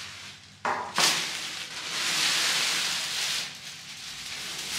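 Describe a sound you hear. Plastic wrap crinkles and rustles against leaves.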